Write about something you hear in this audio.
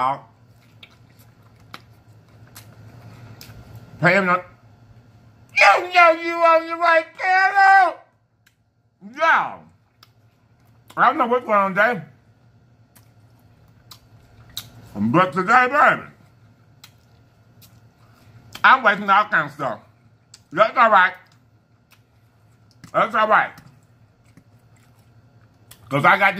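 A man chews and smacks his lips while eating.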